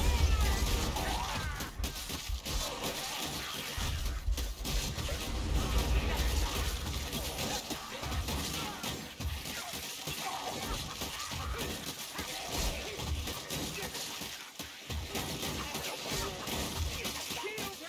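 Weapons clash and slash into flesh over and over.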